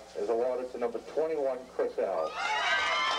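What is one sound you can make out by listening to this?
A man speaks loudly to a crowd outdoors.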